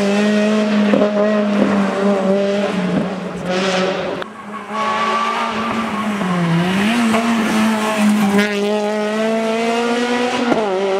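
A rally car engine roars at high revs, dipping briefly and climbing again as it passes close by.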